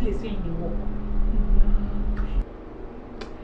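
A young woman speaks anxiously nearby.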